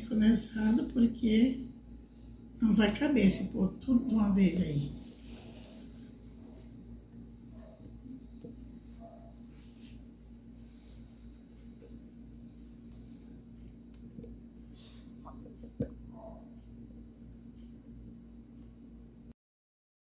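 Thick liquid pours and splashes softly into a container.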